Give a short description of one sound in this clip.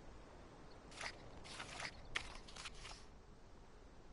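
Paper pages flip in a book.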